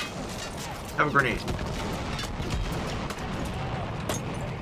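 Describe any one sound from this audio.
An explosion booms with a deep, rolling rumble.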